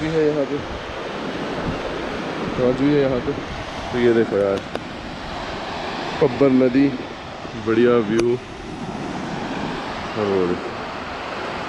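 A young man talks calmly close to the microphone, in short bursts.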